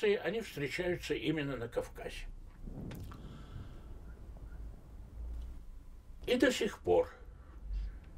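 An elderly man speaks calmly and thoughtfully into a close microphone, with pauses.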